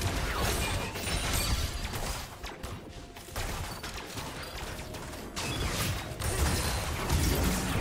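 Spell effects whoosh and crackle in a fantasy battle.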